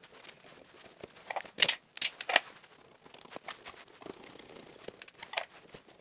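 Metal pliers snap and click against terminals.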